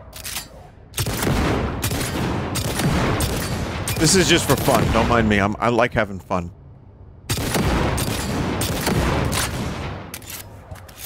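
A pistol fires rapid shots that echo loudly.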